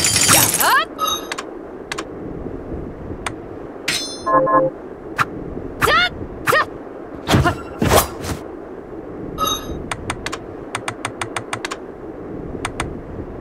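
Menu selections click and blip.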